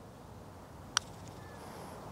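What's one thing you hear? A putter taps a golf ball with a short click.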